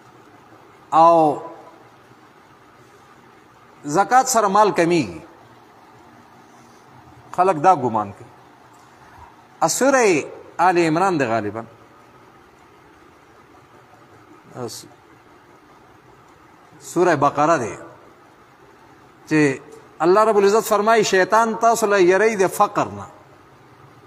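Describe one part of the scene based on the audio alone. A middle-aged man chants melodiously into a microphone in short phrases with pauses.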